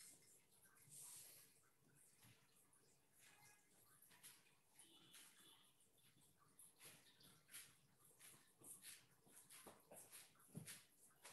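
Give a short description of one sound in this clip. A brush softly sweeps and taps across paper.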